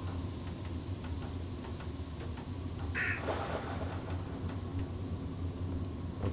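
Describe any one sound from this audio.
Footsteps clank on a metal ladder as someone climbs.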